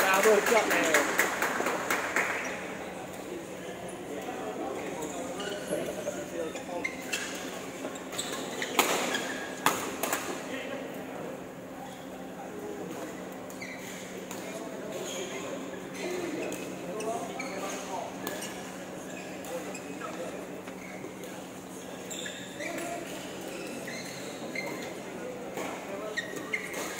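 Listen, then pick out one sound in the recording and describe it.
Shuttlecocks are struck with rackets in sharp pops.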